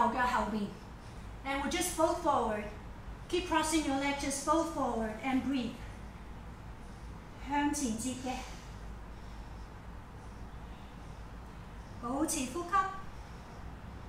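A young woman speaks calmly nearby, in short phrases.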